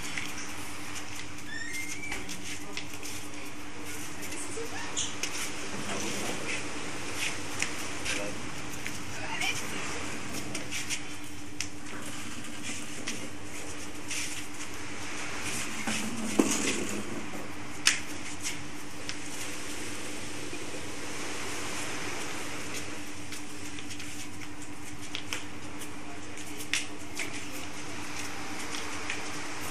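Feet shuffle and scuff on a hard floor.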